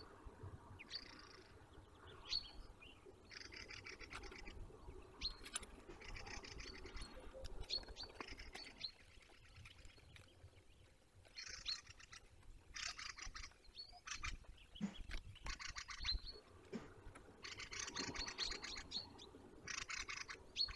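A large bird shifts about on a nest of sticks, rustling twigs.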